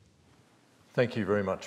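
A man begins speaking into a microphone.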